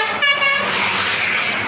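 A bus horn blares with a loud musical tone.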